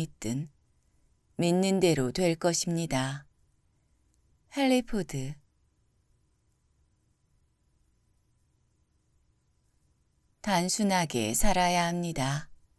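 A woman reads aloud calmly and closely into a microphone, with pauses between lines.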